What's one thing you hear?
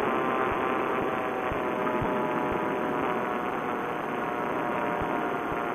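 Wind rushes past in flight.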